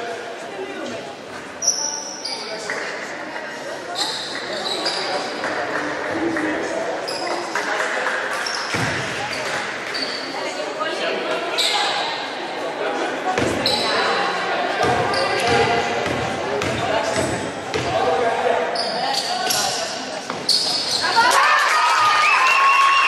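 Sneakers squeak sharply in an echoing gym.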